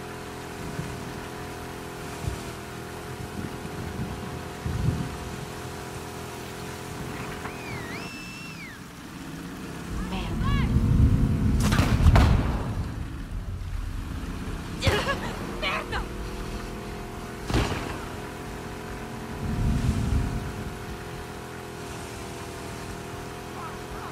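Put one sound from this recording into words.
Water splashes and churns behind a moving boat.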